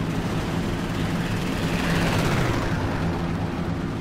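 A propeller plane roars past overhead, its engine pitch dropping as it goes.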